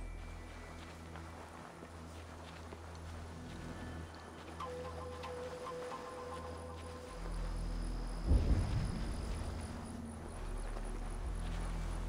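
Footsteps rustle through dry undergrowth.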